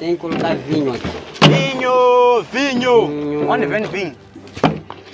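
A second young man laughs and shouts loudly.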